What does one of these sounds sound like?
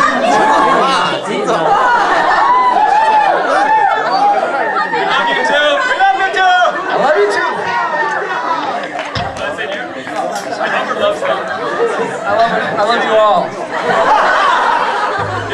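Electric and acoustic guitars play a lively tune together.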